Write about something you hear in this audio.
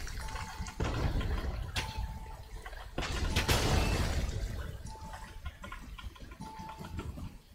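A fountain of water splashes and gushes.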